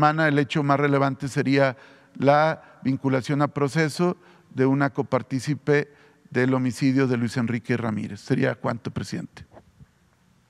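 A man speaks clearly into a microphone, presenting with animation.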